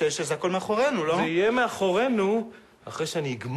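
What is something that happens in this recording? A young man speaks nervously up close.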